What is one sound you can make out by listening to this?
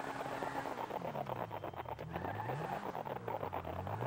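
Tyres squeal on the road as a car turns.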